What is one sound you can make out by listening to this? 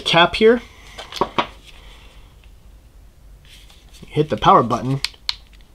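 A man speaks calmly and close to a microphone, in short bursts.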